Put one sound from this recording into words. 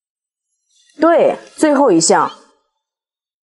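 A young woman answers briefly, close by.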